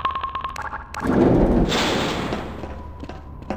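A heavy metal door slides open with a loud rumble.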